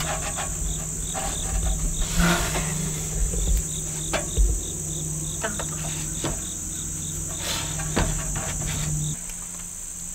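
Wooden boards knock against each other.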